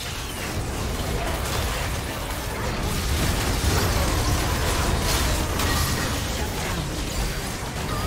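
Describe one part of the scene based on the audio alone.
Magic spells whoosh and burst in a fast video game fight.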